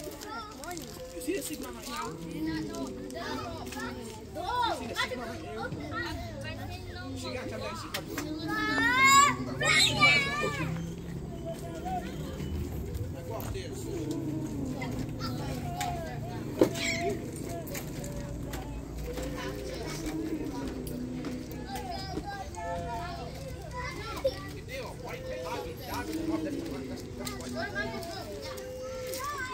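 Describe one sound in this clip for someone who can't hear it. A crowd of men and women chat outdoors.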